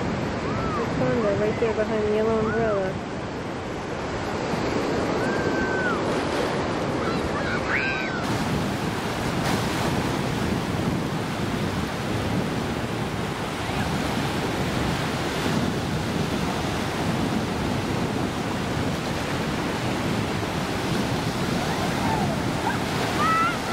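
Waves wash and break on a shore, outdoors in wind.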